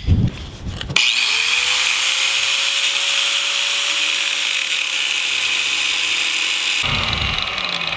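An angle grinder whines as it cuts through metal.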